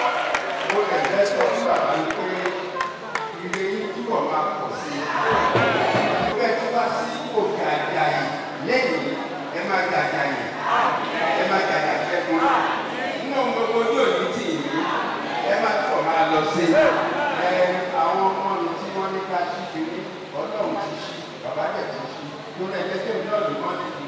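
An elderly man speaks calmly into a microphone, close by.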